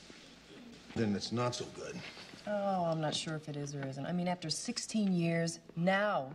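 A young woman speaks calmly in reply.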